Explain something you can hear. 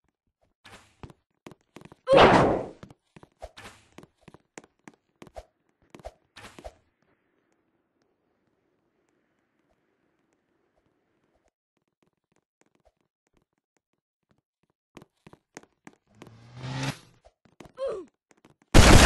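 Short electronic game sounds blip and click.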